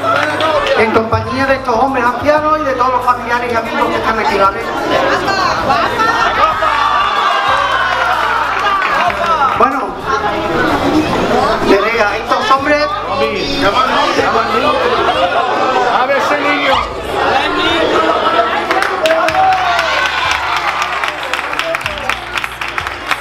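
A crowd of adults and children chatters and calls out.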